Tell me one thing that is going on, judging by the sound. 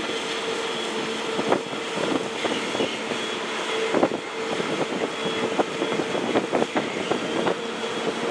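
A large ferry's engines drone as it reverses toward the quay.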